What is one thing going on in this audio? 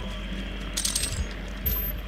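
A plasma gun fires with a short burst.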